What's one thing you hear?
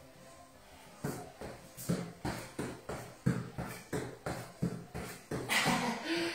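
Feet tap quickly and rhythmically on a rubber floor mat.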